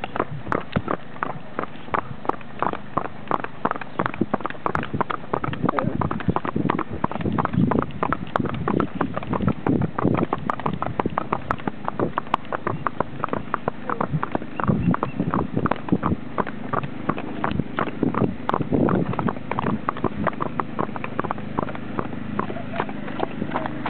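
Horse hooves clop rhythmically on pavement at a trot.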